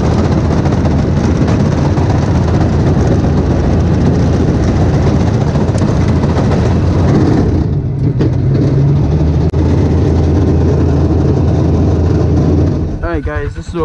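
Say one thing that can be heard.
A utility vehicle's engine roars loudly as it drives.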